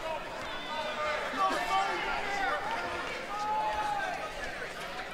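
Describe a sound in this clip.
A crowd murmurs and calls out in a large echoing arena.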